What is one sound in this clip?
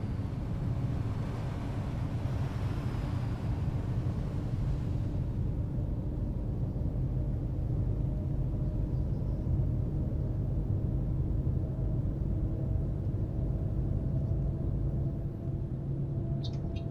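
Tyres roll steadily on a road.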